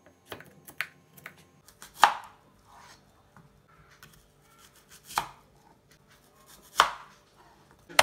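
A knife cuts through fruit and taps a cutting board.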